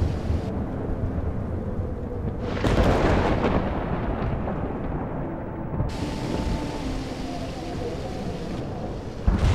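Strong wind roars and rumbles.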